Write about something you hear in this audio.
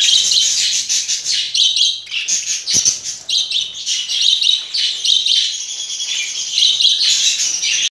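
Budgerigars chirp and chatter busily close by.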